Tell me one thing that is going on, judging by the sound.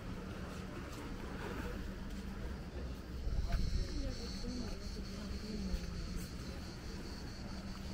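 Adults talk nearby as they pass by on foot.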